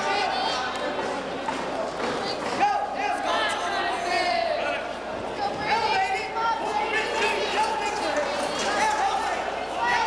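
Young spectators shout and cheer loudly in a large echoing hall.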